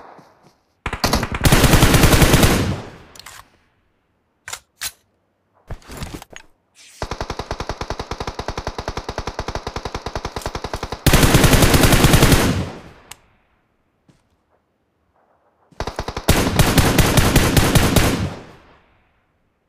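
Rapid gunshots crack in loud bursts.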